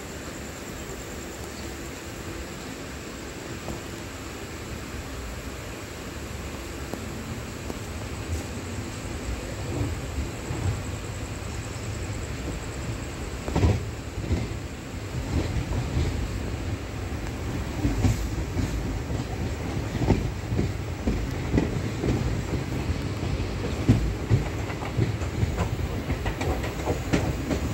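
A train rumbles steadily along, growing louder as it picks up speed.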